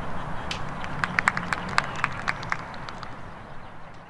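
A person claps their hands several times.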